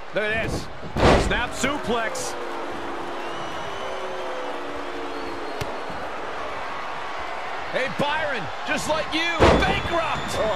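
Bodies slam hard onto a wrestling mat.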